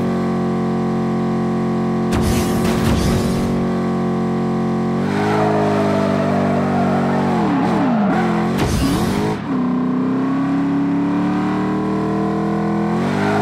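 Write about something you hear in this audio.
A racing car engine roars at high revs.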